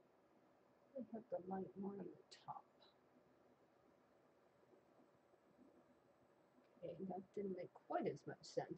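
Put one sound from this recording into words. An older woman speaks calmly through a microphone.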